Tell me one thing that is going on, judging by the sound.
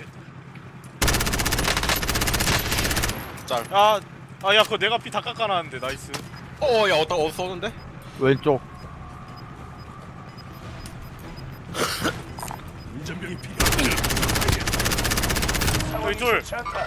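A rifle fires rapid, loud bursts of shots.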